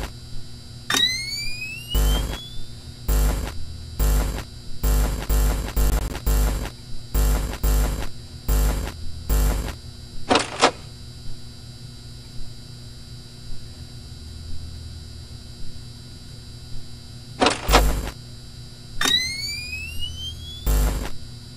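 A monitor powers up with a rising electronic whine.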